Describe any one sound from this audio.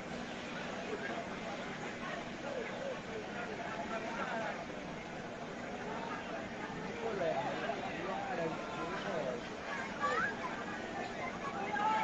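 A crowd of people shout and talk excitedly in the distance.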